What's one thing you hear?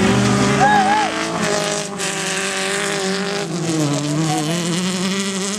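A car engine roars loudly nearby, revving up and down.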